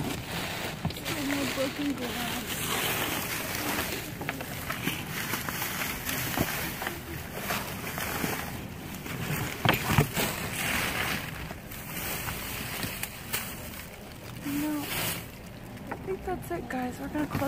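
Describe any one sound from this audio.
Plastic bags rustle and crinkle as hands dig through rubbish.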